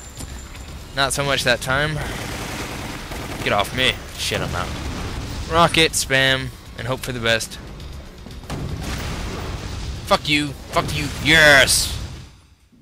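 Gunfire and explosions boom.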